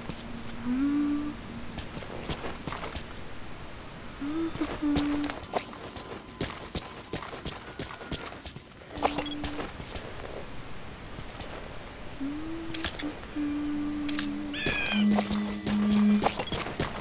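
Short electronic tones chirp now and then.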